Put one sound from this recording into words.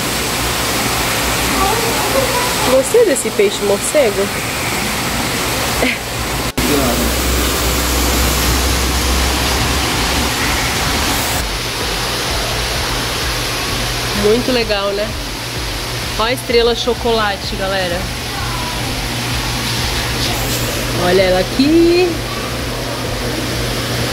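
Water bubbles and hisses steadily in an aquarium.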